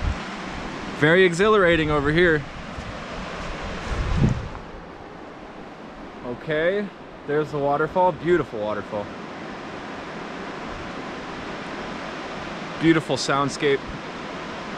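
A young man speaks calmly, close by, outdoors.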